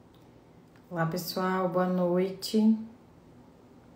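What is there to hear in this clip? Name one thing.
A young woman speaks briefly and calmly, close to the microphone.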